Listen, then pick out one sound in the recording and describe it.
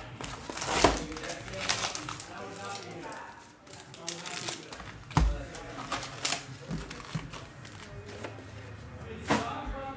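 Foil card packs crinkle and rustle as they are handled.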